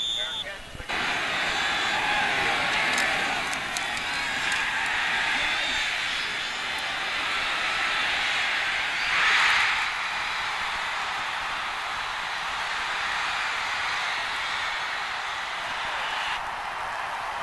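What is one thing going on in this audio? A large stadium crowd roars and cheers, swelling to a loud burst midway.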